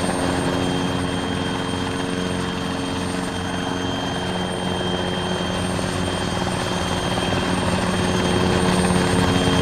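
A helicopter's engine whines and its rotor blades thump steadily close by.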